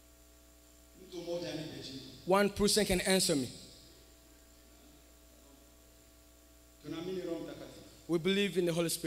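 A man speaks through a microphone and loudspeakers in a large echoing hall.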